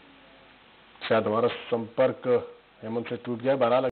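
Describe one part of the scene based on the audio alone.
A young man reads out the news clearly through a microphone.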